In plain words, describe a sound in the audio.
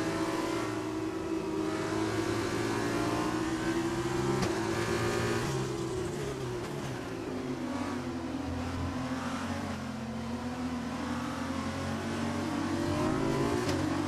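A racing car engine whines loudly and steadily close by, its pitch falling as it slows for a corner and rising again as it speeds up.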